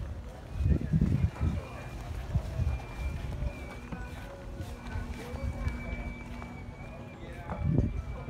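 Footsteps tap steadily on a dock.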